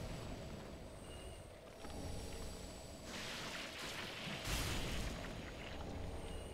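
A sword swings and slashes with a whoosh.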